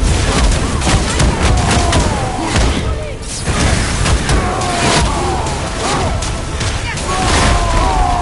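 A creature screeches with high, wavering cries.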